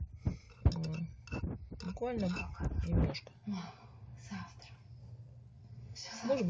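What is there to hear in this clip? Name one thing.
A metal bolt scrapes and clicks as it turns in its hole.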